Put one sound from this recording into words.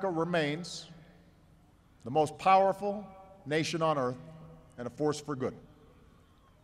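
A man gives a speech slowly and firmly through a microphone and loudspeakers, outdoors.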